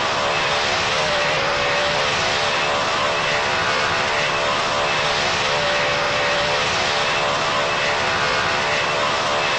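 The jet engines of a game's airliner drone steadily in flight.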